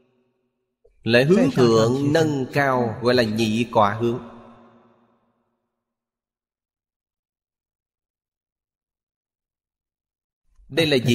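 An elderly man speaks calmly and with expression into a close microphone.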